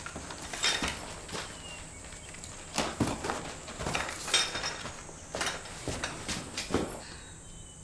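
Footsteps crunch on dirt as a man walks up.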